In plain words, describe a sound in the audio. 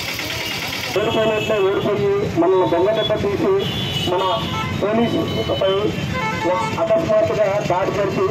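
A man speaks firmly into a microphone through a loudspeaker, outdoors.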